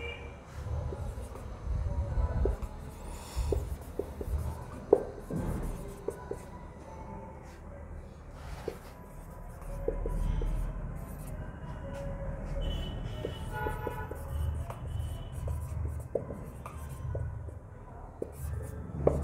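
A marker squeaks and taps against a whiteboard.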